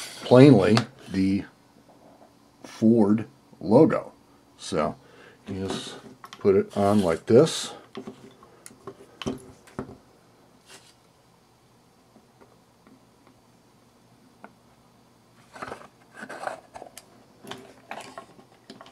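Wood and metal parts knock and clatter softly as they are handled.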